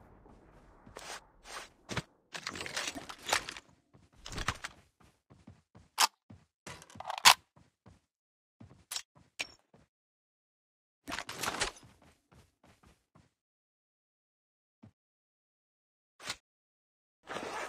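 Short clicks and chimes sound as items are picked up.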